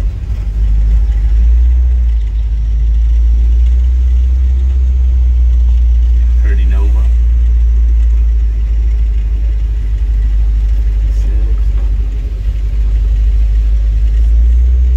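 A car engine rumbles steadily from inside a slowly moving car.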